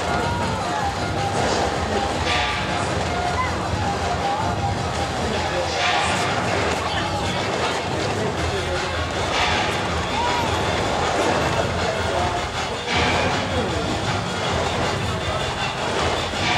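A crowd of men chatters outdoors nearby.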